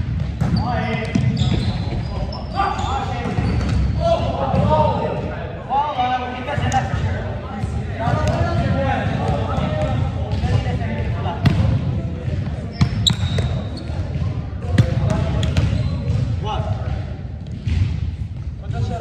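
Young men talk and call out to each other in a large echoing gym.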